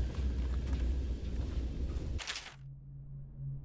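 A sheet of paper rustles as it is unfolded.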